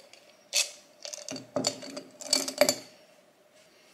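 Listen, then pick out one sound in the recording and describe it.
Pens rattle against each other inside a glass jar.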